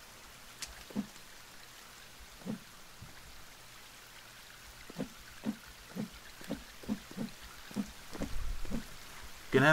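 Hands grip and scrape against rock with soft thuds as someone climbs.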